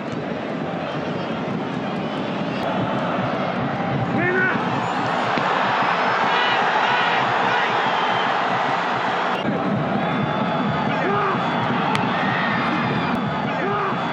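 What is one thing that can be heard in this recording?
A large stadium crowd roars steadily, swelling louder for a while.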